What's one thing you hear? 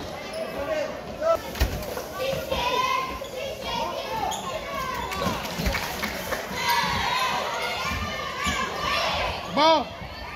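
Girls call out and chatter, echoing in a large hall.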